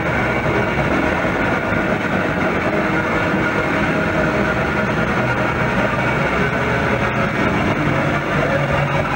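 An electric guitar plays loud, distorted rock music.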